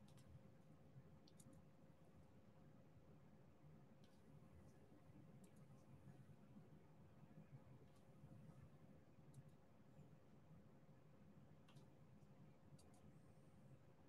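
Small plastic beads click softly as they are pressed into place.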